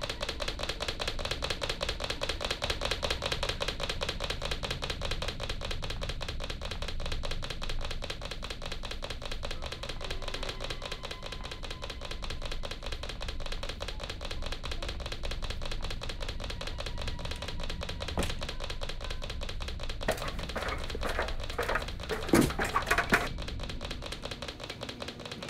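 Footsteps thud quickly across a creaky wooden floor.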